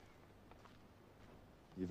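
Footsteps crunch on gravel outdoors.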